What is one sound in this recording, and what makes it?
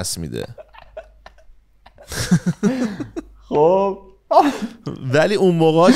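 A young man laughs heartily over an online call.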